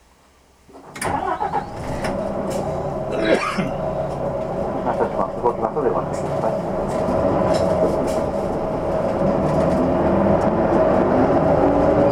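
A vehicle engine hums steadily and grows louder as it pulls away.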